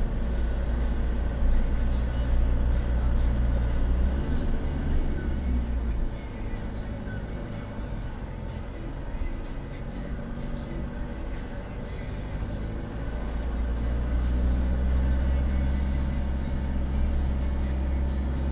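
Tyres roll over a rough road.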